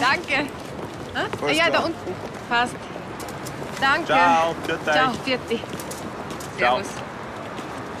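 A young woman talks and laughs cheerfully nearby.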